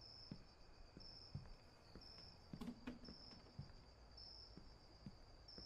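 Footsteps fall on pavement.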